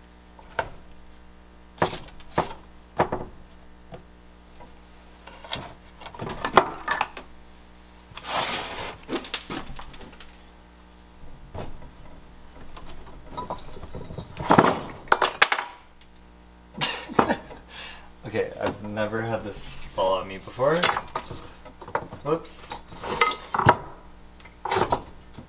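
Clay slabs thump and knock on a hard worktop.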